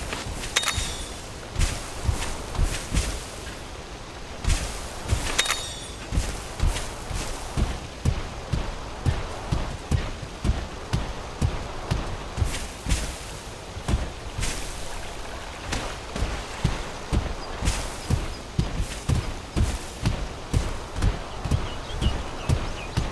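A large creature's feet thud in quick, steady strides.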